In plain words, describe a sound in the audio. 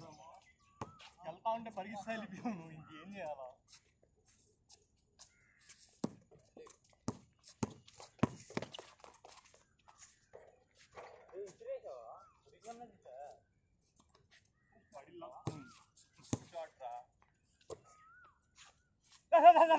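A basketball bounces sharply on a hard court.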